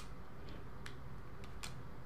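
Small, light footsteps patter on a wooden floor.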